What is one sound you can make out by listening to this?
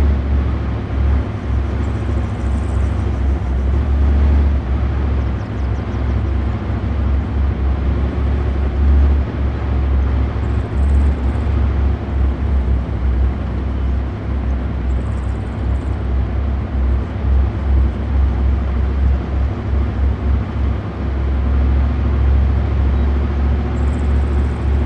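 Helicopters thrum overhead.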